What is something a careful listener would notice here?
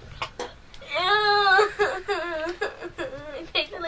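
A young girl speaks and laughs close by.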